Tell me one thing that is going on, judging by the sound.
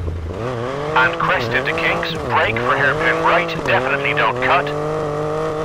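Gravel sprays and rattles against the car's underside.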